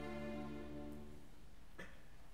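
An orchestra holds a final chord that fades away in a large echoing hall.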